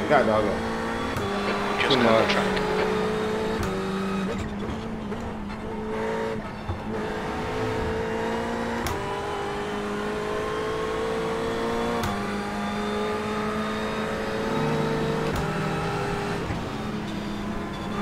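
A racing car engine drones steadily, dropping in pitch with each gear change.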